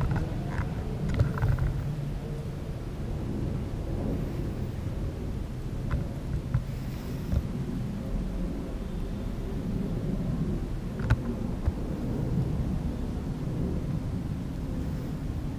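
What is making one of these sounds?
Footsteps crunch on dry leaves and debris.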